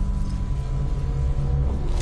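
A robotic arm whirs as it moves.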